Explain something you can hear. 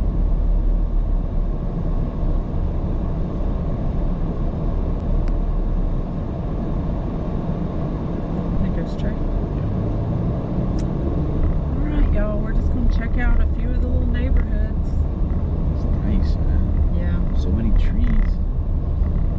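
A car drives along a road with a steady low rumble of tyres and engine.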